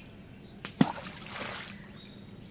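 Something splashes into calm water.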